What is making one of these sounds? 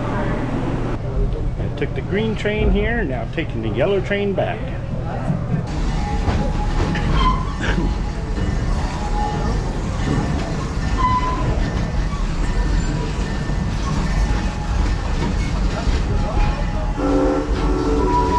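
An open tram rumbles along steadily.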